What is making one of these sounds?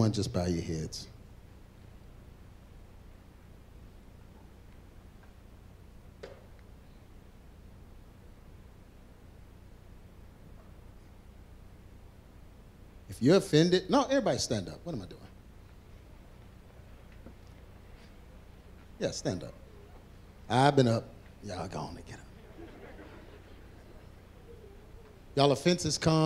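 A man speaks into a microphone in a large room, in short bursts with long pauses.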